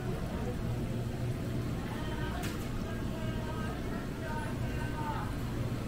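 Water bubbles and gurgles in aquarium tanks.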